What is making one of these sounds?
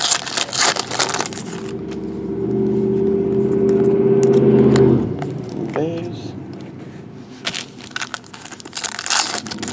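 Plastic wrappers crinkle and rustle as they are handled.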